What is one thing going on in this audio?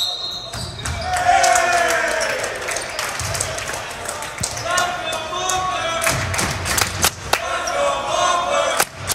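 Young players shout and cheer.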